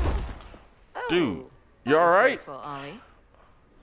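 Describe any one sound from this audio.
A young woman speaks mockingly, close by.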